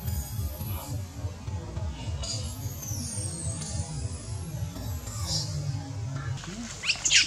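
A baby monkey squeals shrilly.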